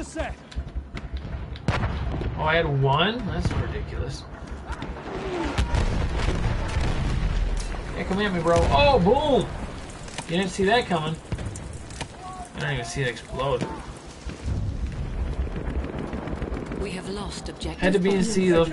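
Gunshots crack and explosions rumble in a video game.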